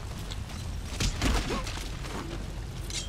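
A man grunts in a brief scuffle.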